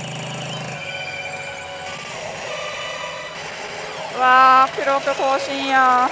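A gaming machine plays bright electronic music and chimes.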